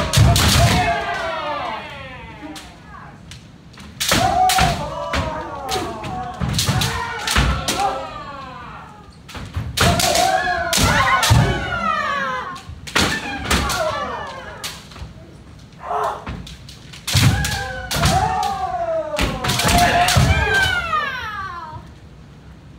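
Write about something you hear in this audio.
Young fighters shout loudly and sharply in an echoing hall.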